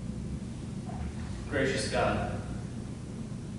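A man speaks briefly through a microphone in an echoing hall.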